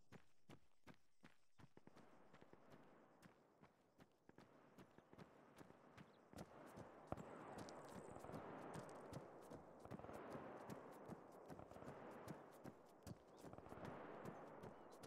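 Footsteps run quickly on hard pavement.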